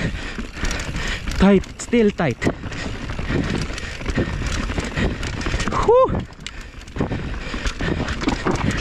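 Bike tyres crunch and rumble over a bumpy dirt trail.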